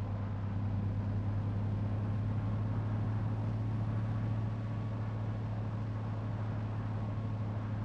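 A bus engine drones steadily at speed.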